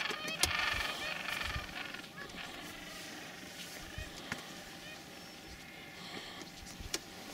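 Many penguins squawk and chatter nearby.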